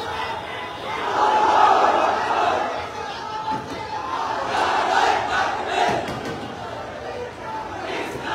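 A large crowd of men shouts and chants loudly, close by, outdoors.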